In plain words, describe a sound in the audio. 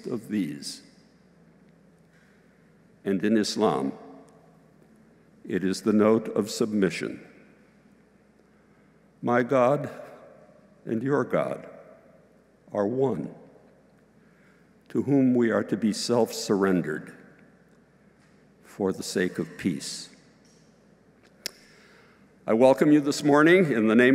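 An elderly man speaks slowly and calmly through a microphone in a large echoing hall, with pauses between phrases.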